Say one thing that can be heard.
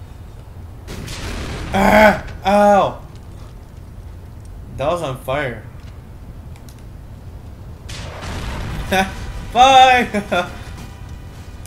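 A rocket launcher fires with a whoosh.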